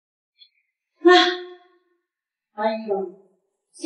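An elderly woman speaks sharply, close by.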